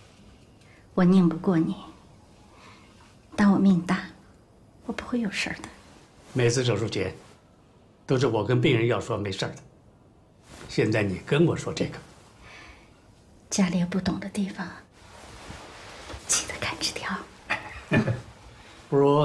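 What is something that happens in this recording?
A middle-aged woman speaks softly and calmly, close by.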